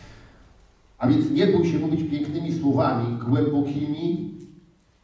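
A middle-aged man speaks aloud in a large room.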